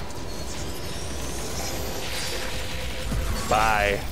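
A beam weapon fires with a sharp electric hum.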